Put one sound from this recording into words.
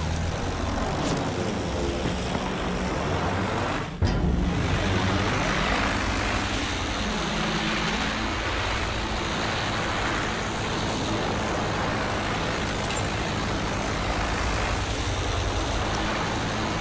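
A triplane's piston engine drones in flight.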